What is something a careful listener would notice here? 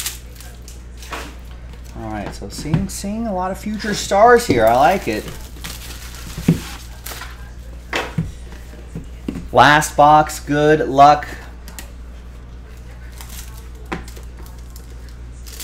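A cardboard box taps and scrapes on a table.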